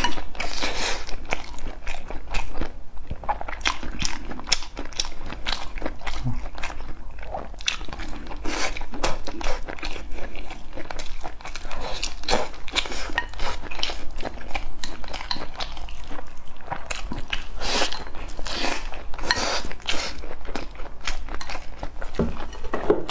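A young man chews with wet, smacking sounds.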